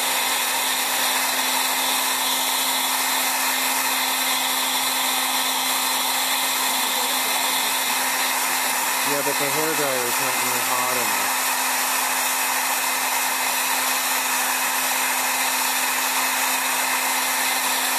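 Water sprays hard from a nozzle against a surface with a loud, steady hiss.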